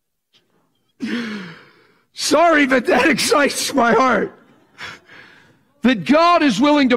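A middle-aged man speaks animatedly into a microphone.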